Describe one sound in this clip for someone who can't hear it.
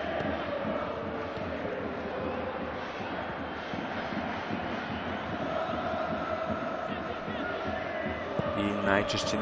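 A large stadium crowd chants and roars steadily in the distance.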